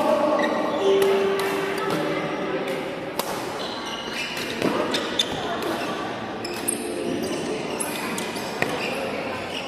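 Rackets hit shuttlecocks with sharp pops in a large echoing hall.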